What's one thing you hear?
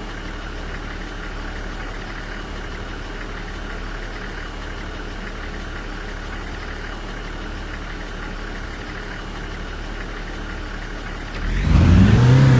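A heavy truck engine idles with a low, steady rumble.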